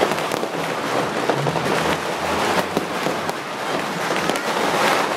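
Fireworks crackle and pop overhead in rapid bursts.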